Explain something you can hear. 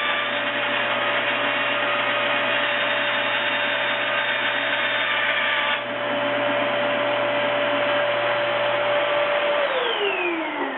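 A band saw hums steadily while cutting.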